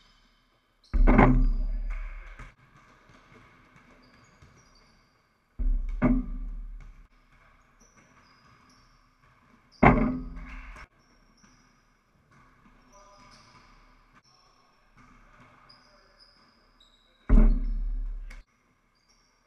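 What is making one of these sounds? A basketball bangs loudly against the rim and backboard, with ringing that slowly fades.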